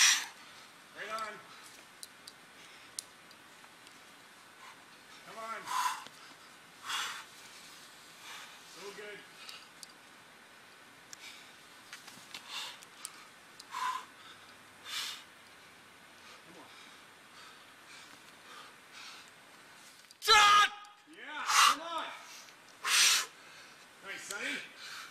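A man grunts and gasps with effort, close by.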